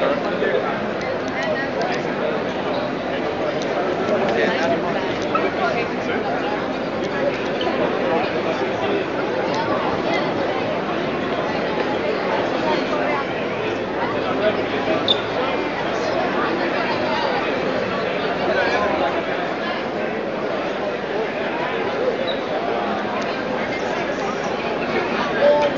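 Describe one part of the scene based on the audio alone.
A crowd of people chatter all around in a large echoing hall.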